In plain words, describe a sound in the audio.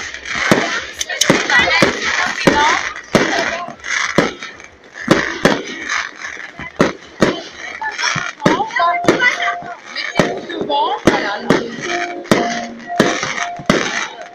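Fireworks bang and pop loudly, again and again.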